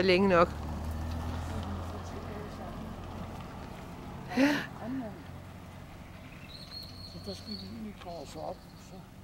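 A middle-aged man talks calmly outdoors, close by.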